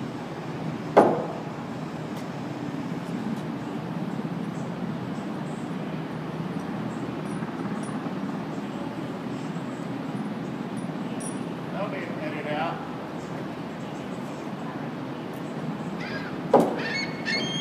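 Wooden boards knock together as a worker stacks them.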